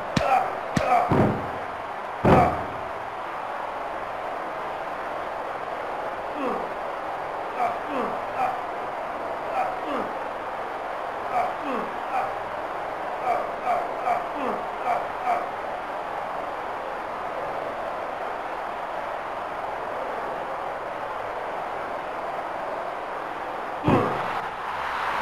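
Heavy blows land with sharp, loud thuds.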